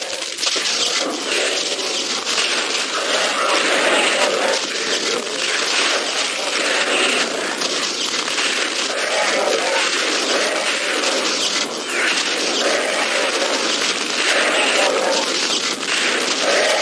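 A video game plasma weapon fires bursts of shots.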